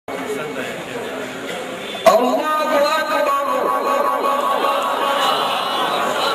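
A man sings a long, wavering chant loudly through a microphone, with echo.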